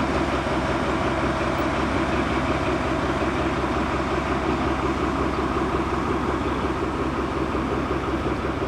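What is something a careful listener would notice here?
A diesel locomotive engine rumbles and hums steadily close by.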